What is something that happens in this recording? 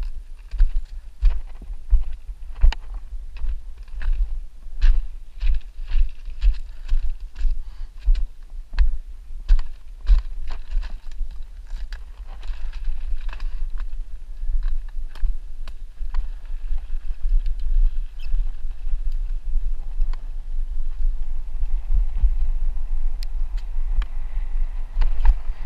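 Bicycle tyres crunch and bump over gravel and rough ground.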